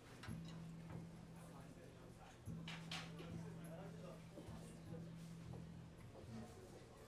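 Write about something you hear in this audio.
A double bass plays a deep walking line.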